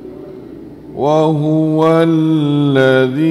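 An elderly man chants in a long, drawn-out voice into a microphone.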